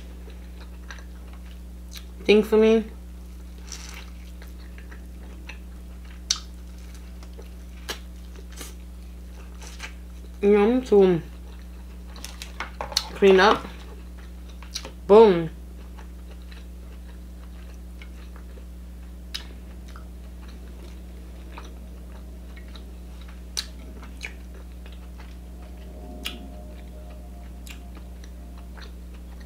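Crab shells crack and snap.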